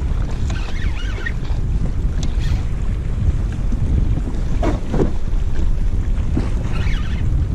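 A hooked fish splashes at the water's surface.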